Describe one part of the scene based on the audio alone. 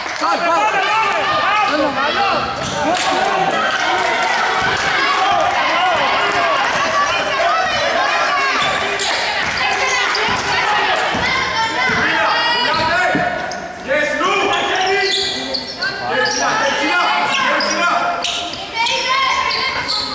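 Basketball shoes squeak on a wooden floor.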